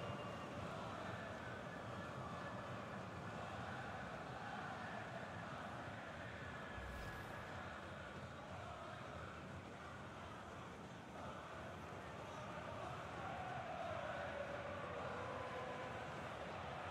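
A large stadium crowd chants and sings loudly.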